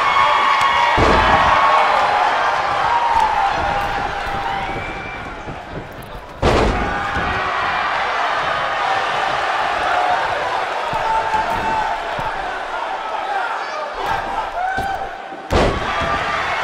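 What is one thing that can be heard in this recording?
Heavy thuds land as wrestlers hit the mat.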